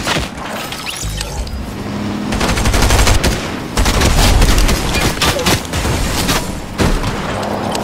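A large truck engine roars as it drives.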